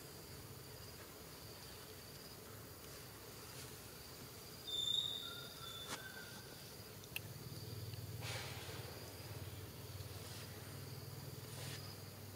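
Grass and leaves rustle as two young monkeys tussle on the ground.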